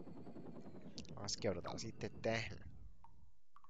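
Mechanical whirring and clanking sound effects play as a robot moves in a game.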